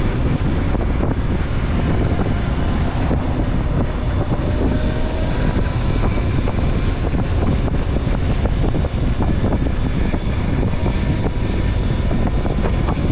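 A motorcycle engine hums steadily up close as it rides along.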